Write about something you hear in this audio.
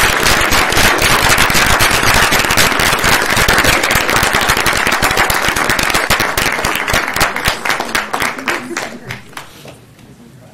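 An audience applauds loudly, then the clapping fades out.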